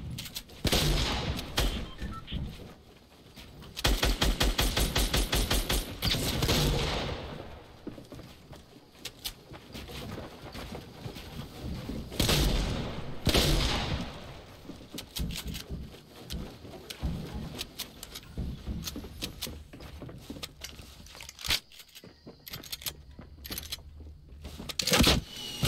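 Wooden walls are built with quick knocking thuds.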